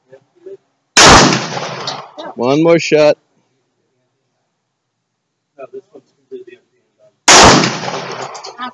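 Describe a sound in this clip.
A pistol fires loud, sharp shots outdoors.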